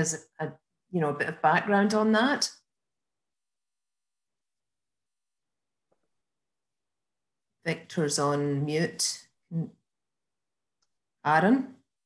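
A middle-aged woman talks calmly over an online call, in short bursts with long pauses.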